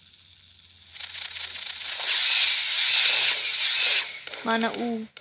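Fireworks crackle and fizz overhead.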